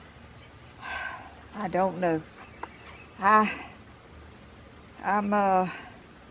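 An elderly woman speaks calmly and with expression, close by.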